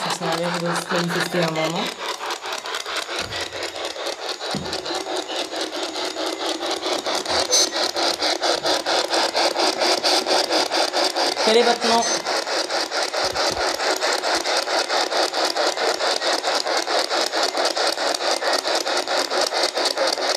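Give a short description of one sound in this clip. A handheld radio sweeps through stations, giving out rapid, steady pulses of crackling static.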